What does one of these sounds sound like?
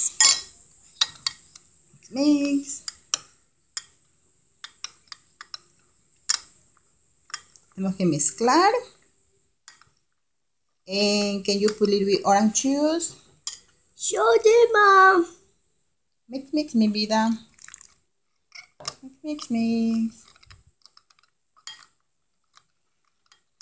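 A metal spoon scrapes and clinks against a glass bowl.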